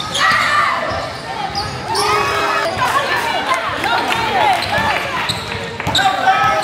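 Spectators talk and call out in a large echoing hall.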